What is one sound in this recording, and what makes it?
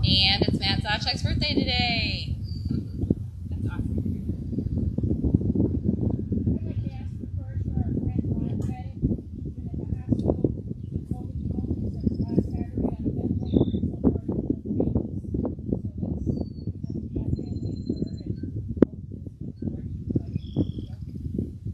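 A woman speaks calmly into a microphone outdoors.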